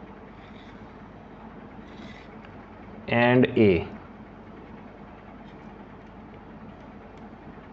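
A pencil scratches lightly on paper.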